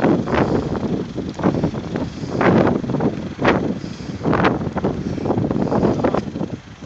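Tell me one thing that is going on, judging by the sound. A vehicle engine rumbles as it drives slowly over a dirt track.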